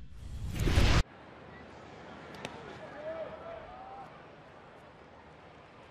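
A stadium crowd murmurs in the distance.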